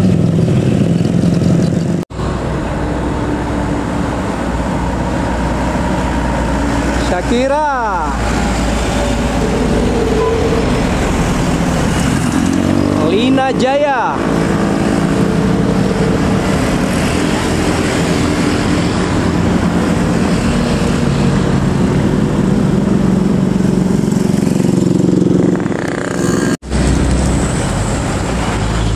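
Engines of passing cars, trucks and motorbikes rumble steadily.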